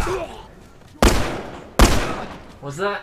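A shotgun fires loudly.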